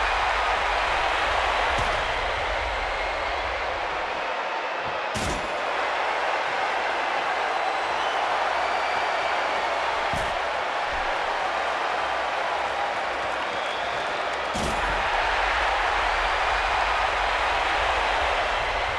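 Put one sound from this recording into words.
A large crowd cheers and roars steadily throughout.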